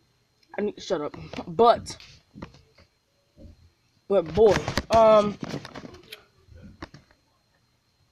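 A young child talks close to a microphone with animation.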